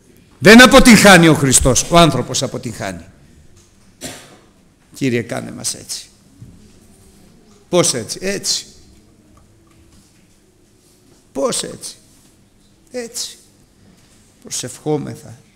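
A middle-aged man speaks with animation through a microphone, in short bursts with pauses, in a large echoing hall.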